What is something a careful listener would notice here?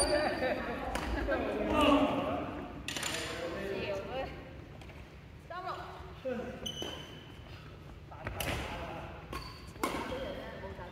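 Rackets strike a shuttlecock with sharp pops in an echoing hall.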